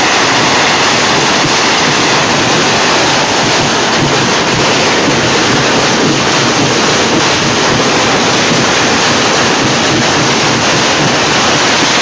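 Firecrackers crackle and bang loudly all around.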